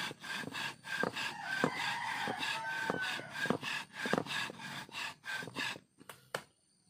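A wooden pole pounds rhythmically against bark on the ground.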